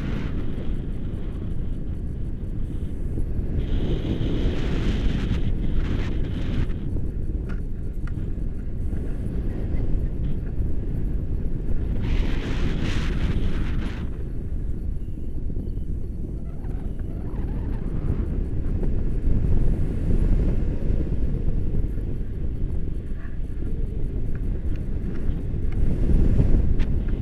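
Strong wind roars and buffets close by throughout.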